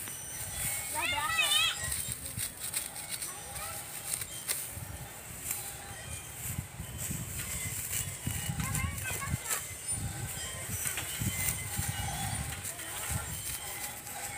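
A sickle slices through dry rice stalks with crisp rustling snaps.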